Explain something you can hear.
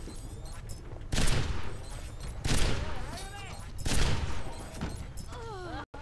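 Sniper rifle shots crack sharply.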